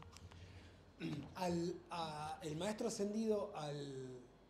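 An elderly man speaks warmly into a close microphone.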